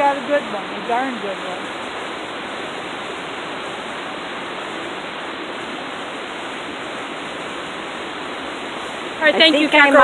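Footsteps scuff on rock and dry leaves.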